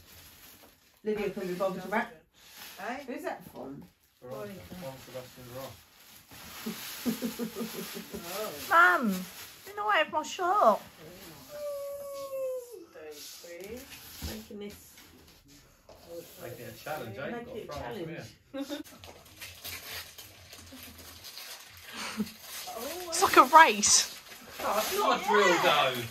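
Women talk and laugh nearby with excitement.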